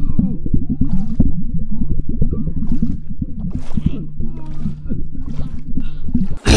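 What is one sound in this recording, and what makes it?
Water swishes and bubbles, heard muffled underwater.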